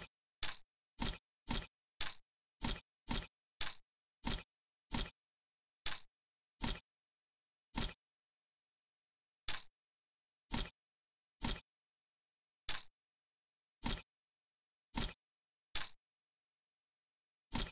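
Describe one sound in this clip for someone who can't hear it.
Short game reward sounds ring out again and again.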